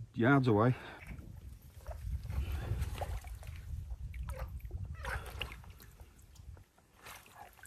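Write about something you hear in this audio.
Water splashes and sloshes as something is handled at the water's edge.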